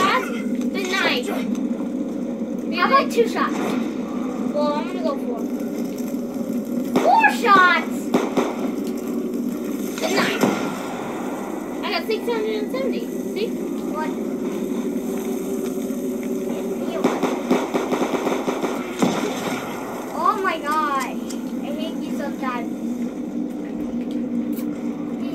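Gunshots and explosions from a video game play through a television speaker.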